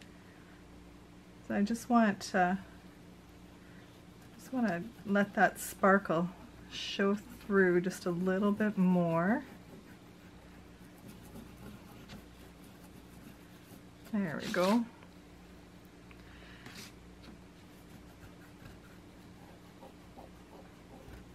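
A paper tissue rubs softly over a rough surface.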